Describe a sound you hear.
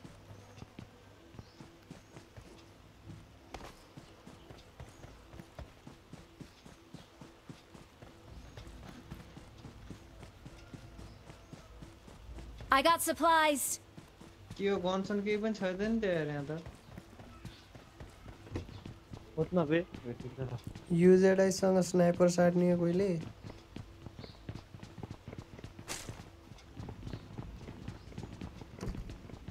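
Footsteps patter quickly on dirt and floorboards.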